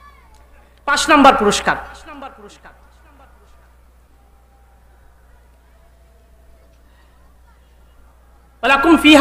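A young man chants loudly into a microphone, with reverberation in a large space.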